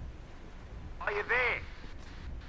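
A man's voice calls out through a radio.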